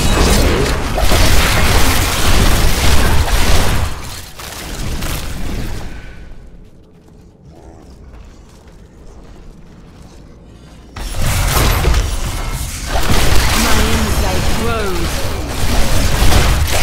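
Spells and blows crash loudly in a fight between game figures.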